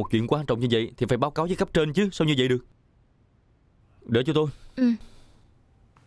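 A young man speaks sharply, close by.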